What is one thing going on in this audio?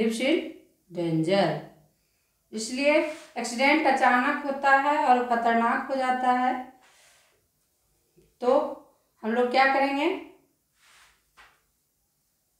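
A woman speaks clearly and calmly close by, with pauses.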